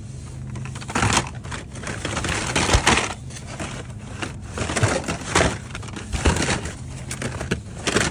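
Plastic toy packages rustle and clatter as a hand rummages through a pile.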